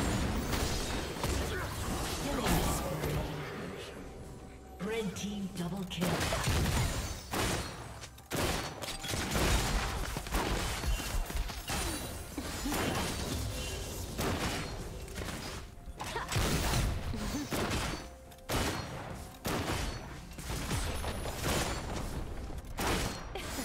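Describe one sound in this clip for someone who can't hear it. Game spells and weapon hits crackle and thud in a fast battle.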